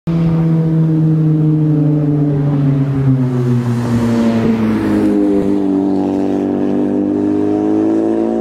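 A sports car engine roars as the car approaches and speeds past, its pitch dropping as it goes by.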